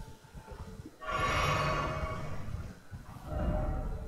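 Flames burst with a roaring whoosh.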